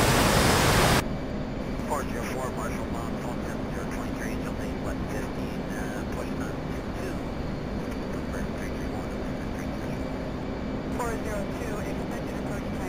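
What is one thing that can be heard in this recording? A jet engine hums low and muffled, as if heard from inside the cockpit.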